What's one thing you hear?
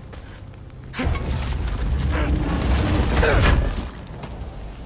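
A heavy chest lid grinds open with a deep rumble.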